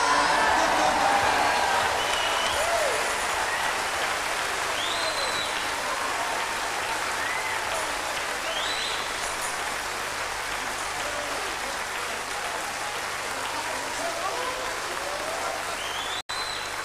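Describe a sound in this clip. A large audience laughs and cheers loudly in a big hall.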